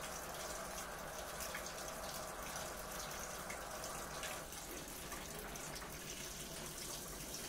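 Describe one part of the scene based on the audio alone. A front-loading washing machine runs with a steady churning hum.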